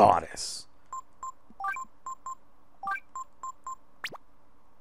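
Short electronic menu beeps chime one after another.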